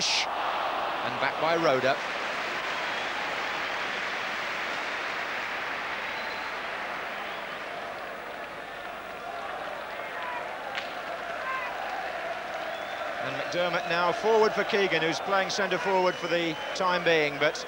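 A large crowd roars and murmurs steadily in a big open stadium.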